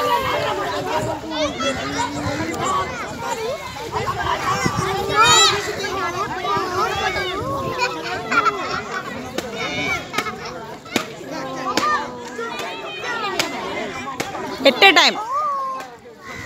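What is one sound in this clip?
A young girl squeals and shouts excitedly.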